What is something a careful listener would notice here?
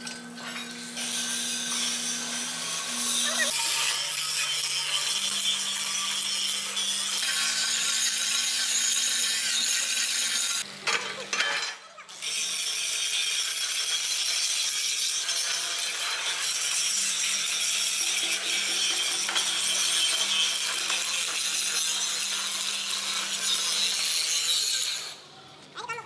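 An angle grinder screeches loudly as it cuts through steel plate.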